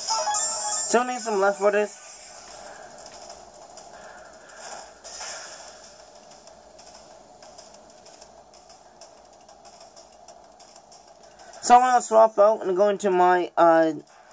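Upbeat electronic game music plays quietly throughout.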